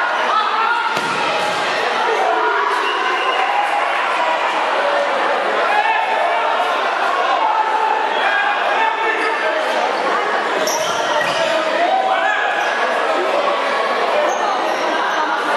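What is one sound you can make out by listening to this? A crowd of spectators chatters and shouts throughout in a large echoing hall.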